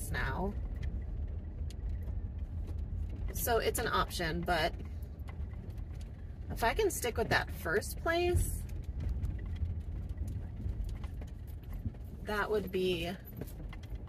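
A woman talks close by in short calm phrases.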